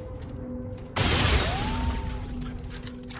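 A gun fires a loud shot that echoes.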